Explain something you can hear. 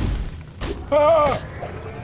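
An electric blast zaps and crackles.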